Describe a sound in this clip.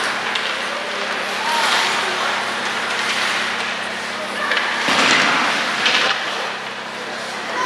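Ice skates scrape and carve across ice in a large echoing arena.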